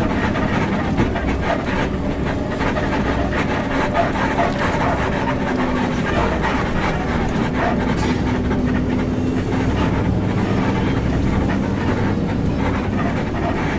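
A bus engine rumbles steadily from inside the cab.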